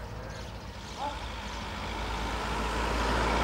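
A car drives by on a nearby road.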